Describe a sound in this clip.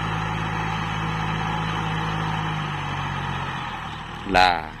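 A tractor engine hums steadily nearby, then fades.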